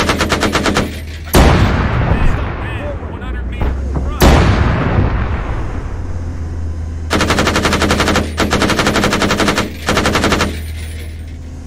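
A heavy cannon fires in rapid bursts.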